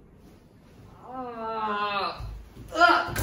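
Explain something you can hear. A young man lets out a long, wavering cry close by.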